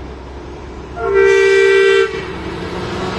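A truck horn honks loudly.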